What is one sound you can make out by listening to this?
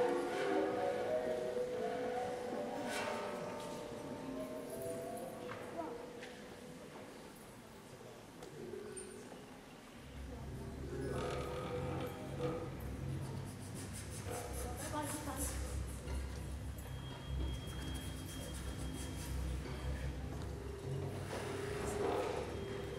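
A small string ensemble plays music in a large echoing hall.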